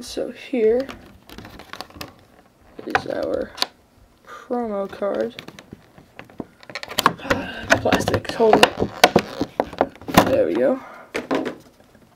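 A clear plastic tray clatters and crackles as hands handle it.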